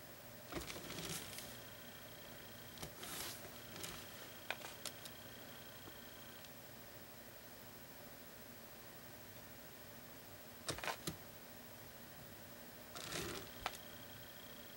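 A stiff board rustles and bumps as hands shift it.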